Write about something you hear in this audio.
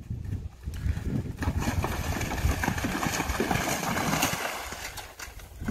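A horse splashes through shallow water.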